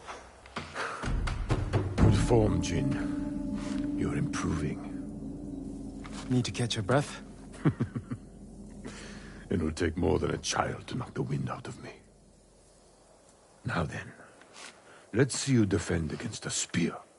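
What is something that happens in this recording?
A middle-aged man speaks calmly and warmly.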